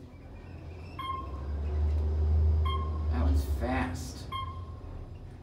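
An elevator chime dings softly as floors pass.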